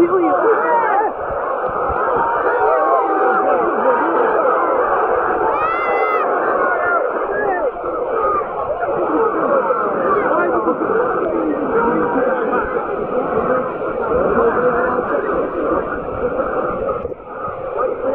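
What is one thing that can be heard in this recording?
A big crowd of men sings and chants together in a large open stadium.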